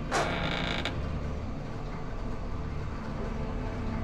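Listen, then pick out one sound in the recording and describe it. Heavy metal doors slide open.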